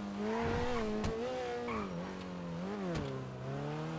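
A car exhaust pops and bangs.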